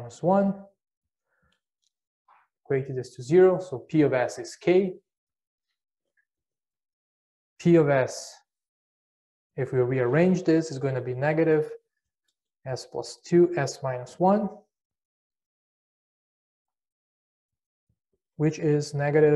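A middle-aged man speaks calmly and clearly into a close microphone, with pauses.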